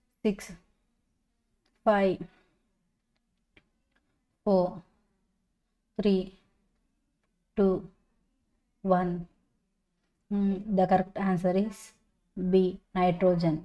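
A young woman speaks calmly in short phrases, close to a microphone.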